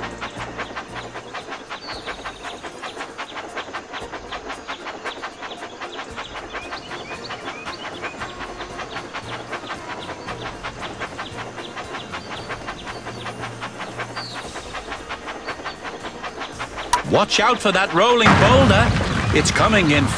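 A small train clatters steadily along its track with quick, even clicks.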